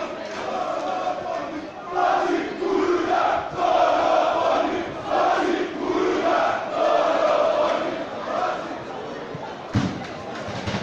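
A large crowd of fans chants in loud rhythmic bursts nearby.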